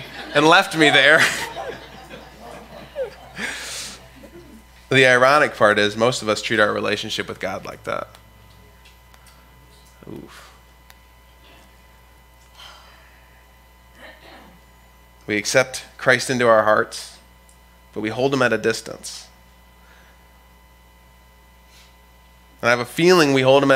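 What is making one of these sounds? A young man speaks calmly through a microphone, pausing between phrases.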